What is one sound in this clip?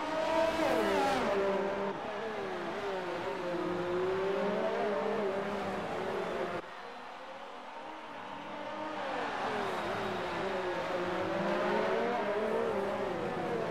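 Racing car engines scream loudly, rising and falling in pitch as the cars shift gears.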